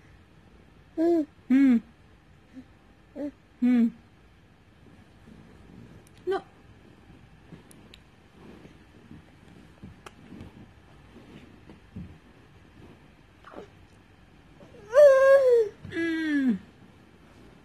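A baby babbles and squeals up close.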